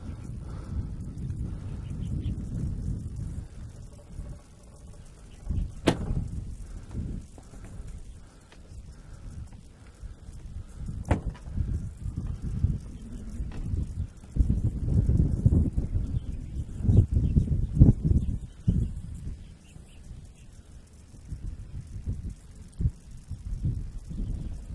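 Wind gusts and rumbles across the microphone outdoors.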